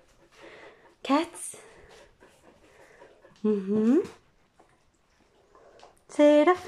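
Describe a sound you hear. A dog whines and yelps in short, rising bursts close by.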